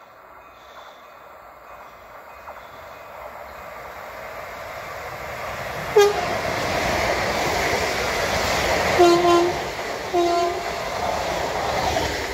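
A train approaches and rushes past, growing louder.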